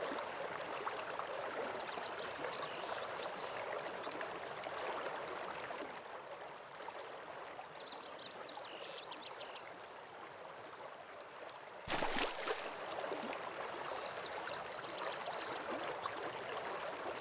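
A waterfall rushes steadily in the distance.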